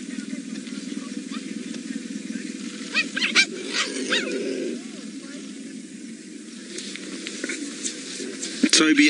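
Cheetahs tear and chew at a carcass.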